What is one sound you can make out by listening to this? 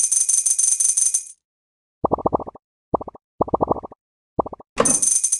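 Bright game chimes ring rapidly as coins are collected.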